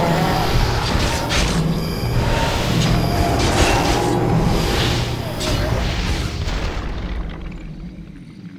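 Game battle sounds clash with spell blasts and weapon hits.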